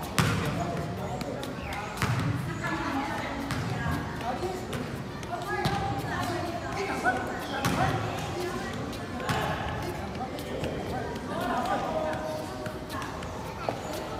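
A soccer ball thuds repeatedly as a boy kicks it.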